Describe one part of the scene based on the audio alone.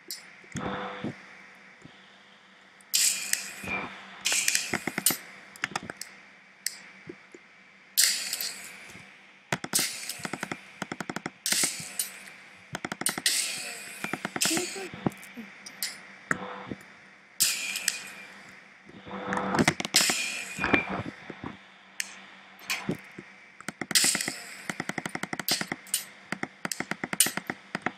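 Game guns fire sharp zapping shots in quick bursts.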